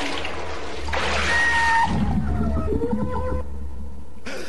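A woman strains and whimpers underwater.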